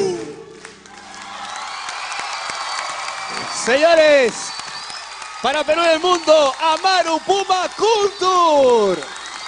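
A large crowd cheers and applauds.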